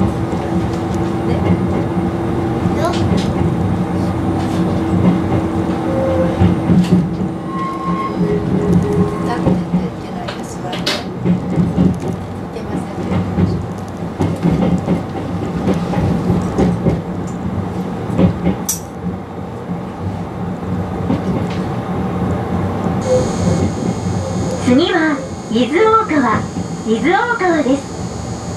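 A train hums and rumbles steadily along the tracks.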